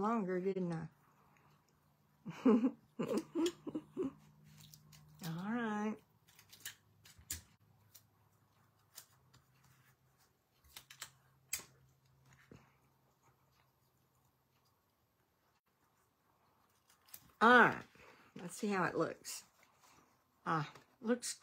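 Paper rustles and crinkles softly under hands.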